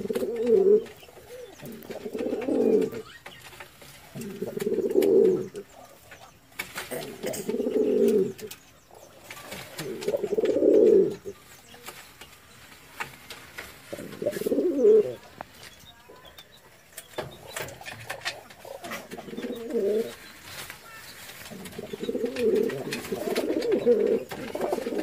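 Pigeons coo in low, throaty bursts close by.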